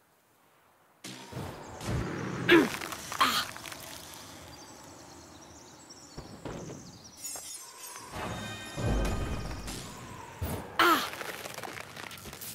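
Magic spells burst and whoosh in a game's battle.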